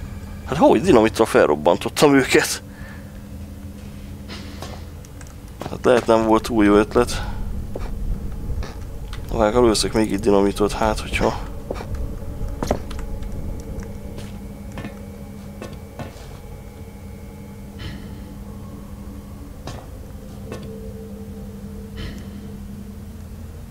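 Footsteps clank on a metal grate floor.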